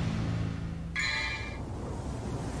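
A soft chime rings from a game menu opening.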